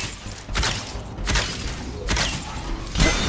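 A bow shoots arrows with sharp twangs.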